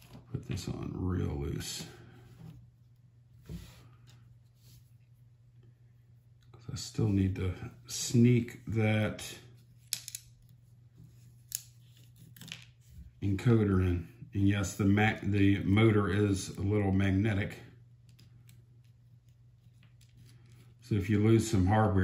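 Small plastic parts click and tap together as they are fitted by hand.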